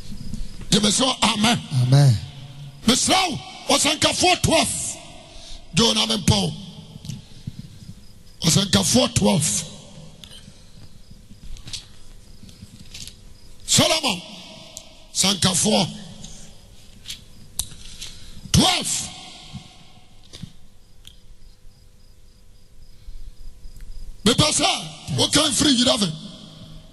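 A young man preaches forcefully into a microphone in bursts, his voice echoing through a large hall.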